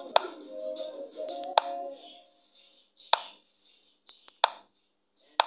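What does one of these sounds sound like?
Short sharp clicks of chess pieces being placed sound a few times.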